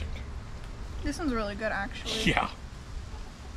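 A young woman speaks briefly, close by.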